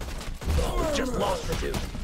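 Sharp blows and clashes of a fight ring out.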